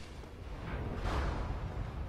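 A sword swishes through the air.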